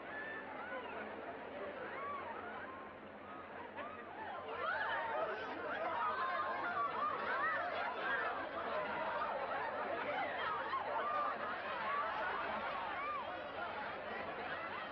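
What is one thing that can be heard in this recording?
A large crowd chatters and calls out noisily.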